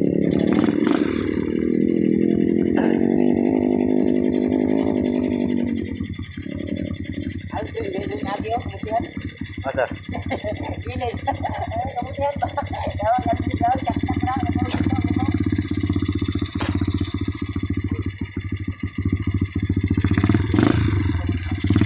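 A motorbike engine idles close by, revving now and then.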